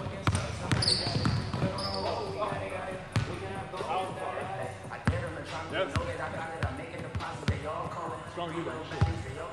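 A basketball bounces on a hard court floor, echoing in a large gym.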